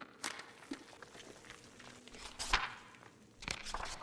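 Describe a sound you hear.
A paper page turns over.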